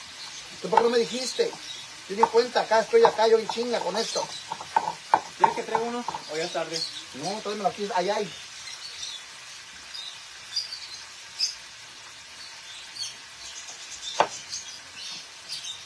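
A stone pestle grinds and knocks in a stone mortar.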